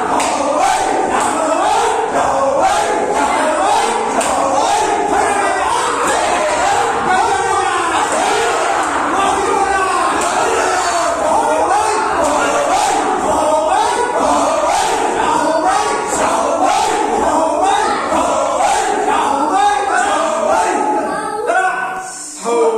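A group of young men and boys shout and cheer excitedly nearby.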